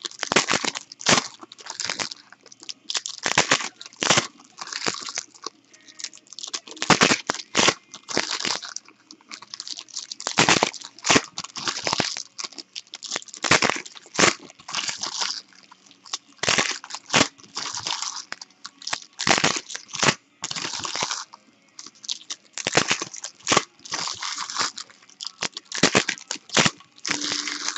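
Foil wrappers crinkle and rustle close by.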